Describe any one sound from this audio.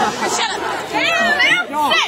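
A young woman shouts excitedly close by.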